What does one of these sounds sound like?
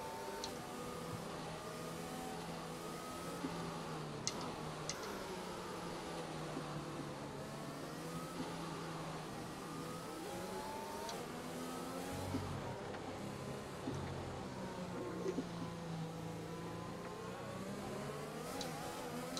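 Racing car engines whine and rise and fall in pitch as gears change.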